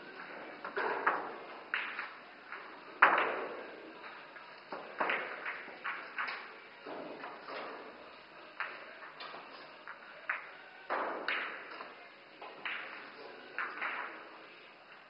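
Pool balls thud into the cushions and pockets.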